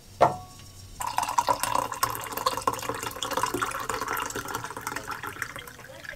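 Coffee pours and splashes into a mug.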